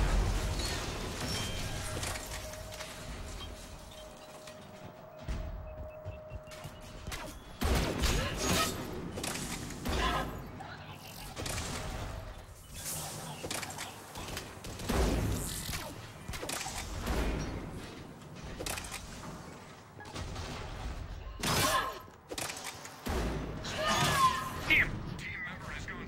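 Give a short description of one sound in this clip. Heavy footsteps thud on a metal floor as an armoured soldier runs.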